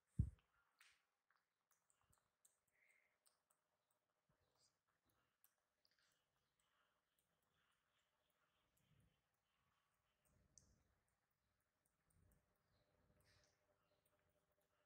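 A plastic wrapper rustles and crinkles softly as a monkey handles it.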